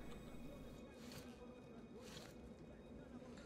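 A rifle is lowered and raised with short metallic rattles.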